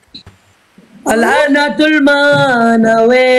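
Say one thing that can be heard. A young woman sings over an online call.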